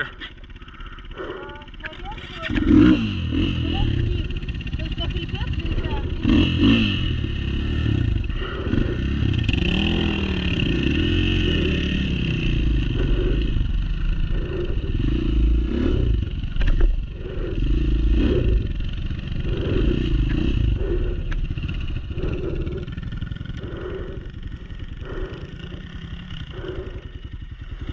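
A dirt bike engine idles and revs up close.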